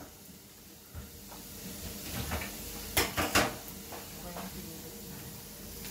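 Utensils clink against a plate.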